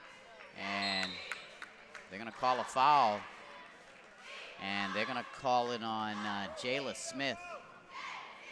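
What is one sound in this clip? People shout loudly in an echoing gym.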